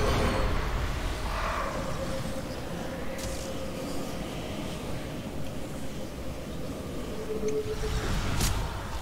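A low magical hum drones steadily.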